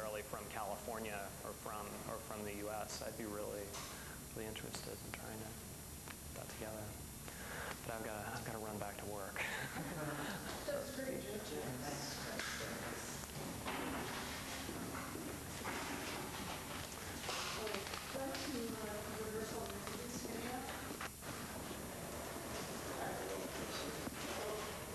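Several men and women talk at once in a room with an echo.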